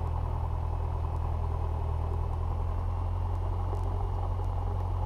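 A small propeller plane's engine drones steadily at idle, heard from inside the cockpit.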